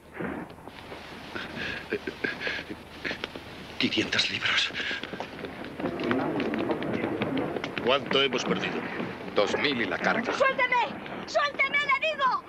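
A crowd of men chatter in a busy room.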